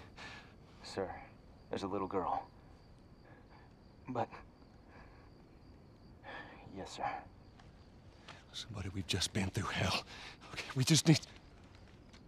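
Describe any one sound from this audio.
A man speaks urgently and pleads.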